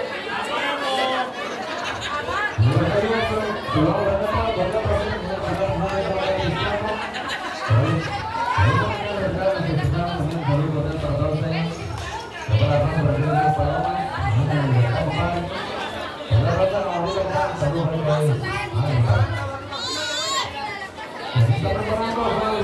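A crowd of men, women and children chatters nearby.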